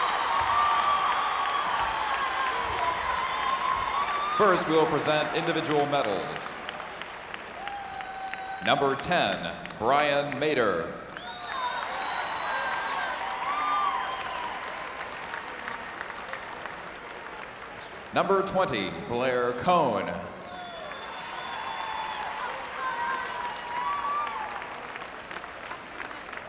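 A large crowd cheers in an echoing arena.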